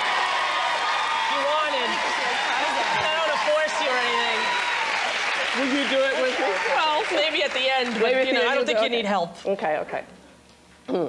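A woman talks with animation into a microphone.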